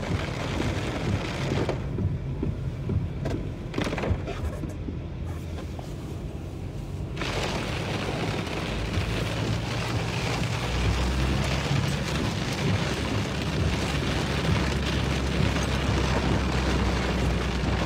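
A car engine hums at low speed.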